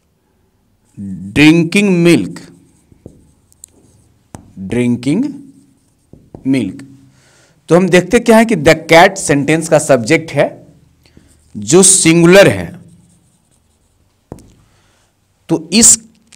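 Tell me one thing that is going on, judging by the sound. A man speaks calmly and clearly, as if teaching, close by.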